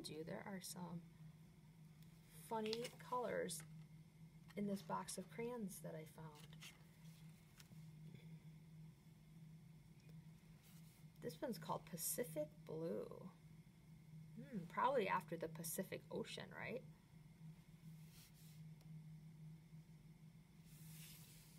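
A crayon scratches softly on paper.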